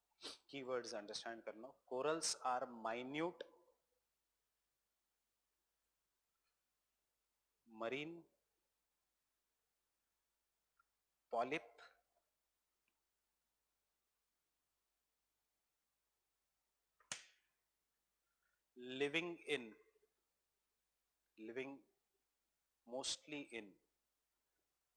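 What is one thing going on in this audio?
A man speaks calmly into a clip-on microphone, in short bursts with long pauses.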